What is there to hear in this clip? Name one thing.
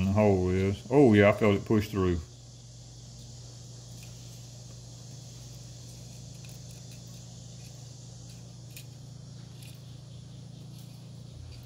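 Thin stiff strands rustle and tick softly as hands handle them.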